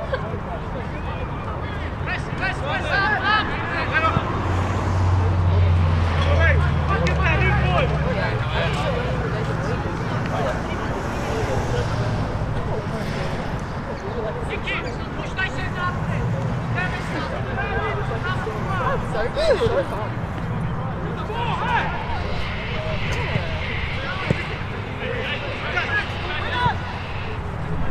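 Players shout to each other across an outdoor field.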